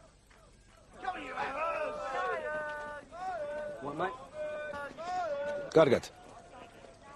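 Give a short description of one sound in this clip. A man shouts loudly outdoors.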